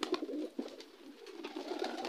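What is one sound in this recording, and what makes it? A pigeon flaps its wings in take-off.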